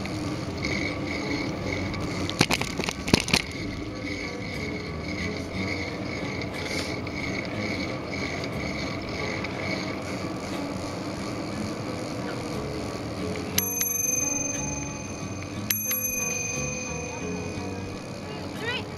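Skateboard wheels roll steadily over pavement outdoors.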